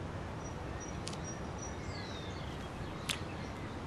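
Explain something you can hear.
A young girl sips a drink from a glass.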